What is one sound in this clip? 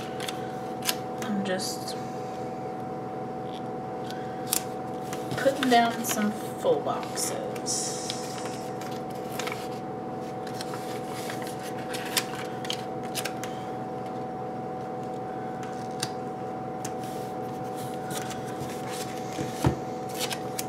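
Fingers tap and press on paper pages.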